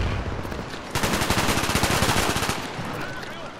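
Rapid gunfire rattles nearby.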